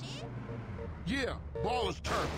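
A man speaks with animation at close range.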